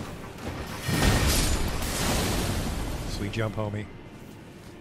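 A heavy weapon strikes with a loud crash.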